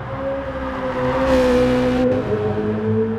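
A racing car whooshes past up close.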